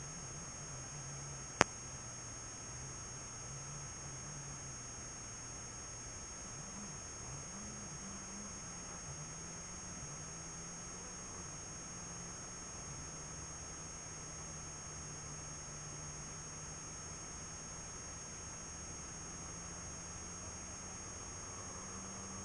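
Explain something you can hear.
A car engine hums steadily, its pitch rising and falling as it drives.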